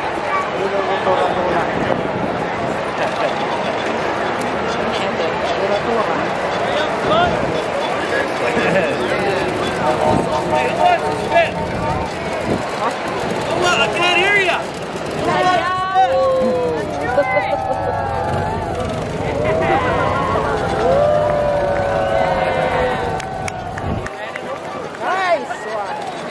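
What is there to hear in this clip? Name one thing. A large crowd chatters and cheers outdoors along a street.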